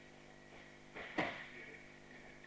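A body thuds heavily onto a mat.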